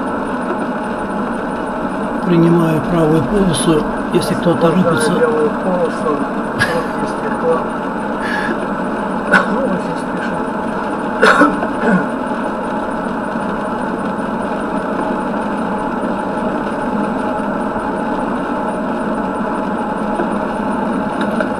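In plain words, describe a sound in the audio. A car's tyres hum steadily on a wet road.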